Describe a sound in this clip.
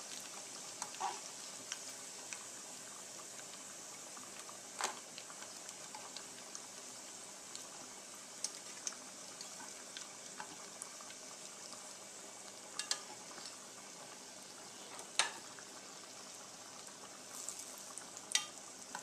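Metal tongs clink against a metal pan.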